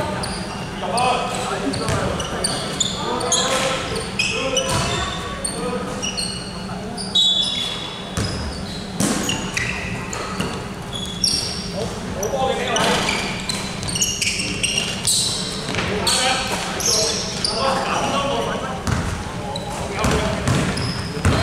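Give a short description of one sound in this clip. Young men shout and call out to one another in a large echoing hall.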